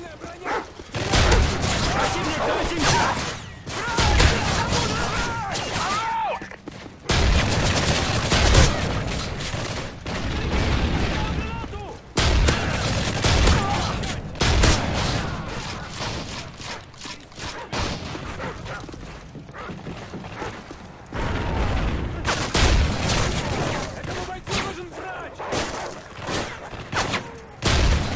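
Guns fire in rapid bursts of loud shots.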